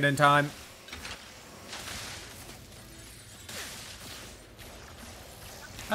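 Crystals shatter with bright clinks.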